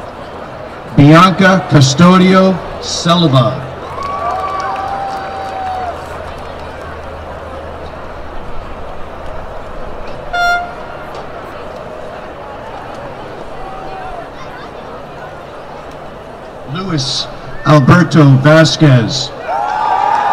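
A man reads out names over a loudspeaker in a large open-air space.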